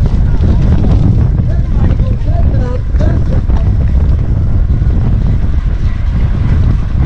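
Wind rushes and buffets loudly past a fast-moving cyclist.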